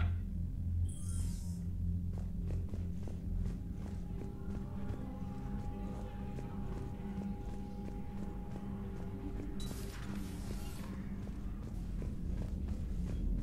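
Footsteps thud on a metal floor at a steady walking pace.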